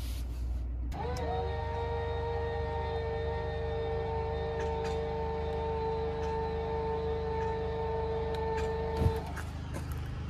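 An electric motor whines steadily, then stops.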